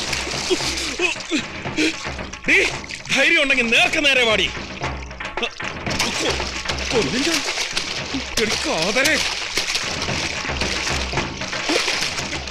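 A man splashes through water with his arms.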